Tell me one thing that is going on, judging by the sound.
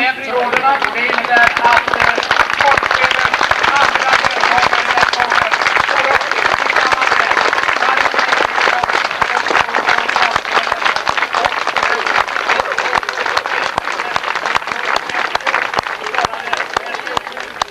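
A crowd claps and cheers loudly outdoors.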